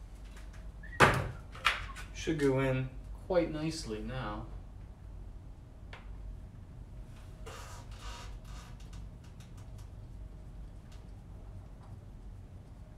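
Objects clatter and knock as a man works overhead.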